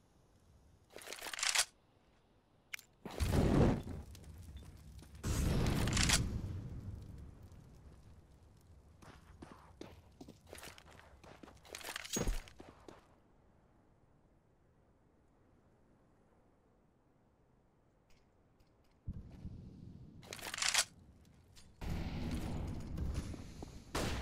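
Footsteps thud on hard ground as a player runs in a video game.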